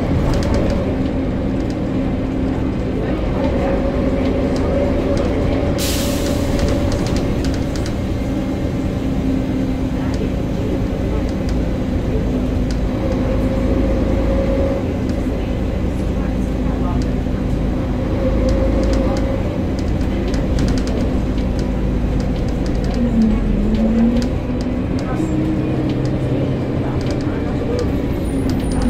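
Loose panels and fittings rattle as the bus moves.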